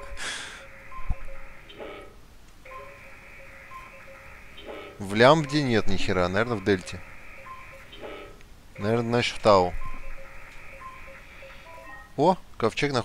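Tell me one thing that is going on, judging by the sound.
Electronic tones beep and hum steadily.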